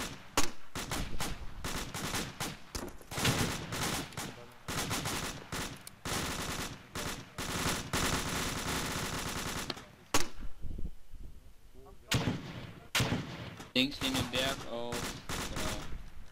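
A rifle fires in sharp, rapid bursts.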